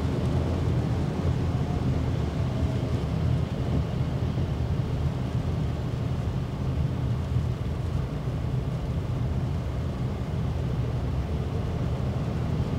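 Road noise rumbles steadily inside a moving car.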